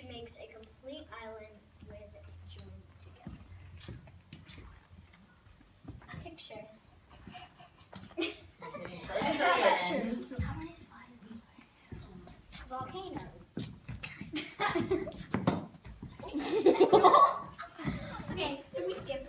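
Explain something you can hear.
A young girl speaks to a room, presenting.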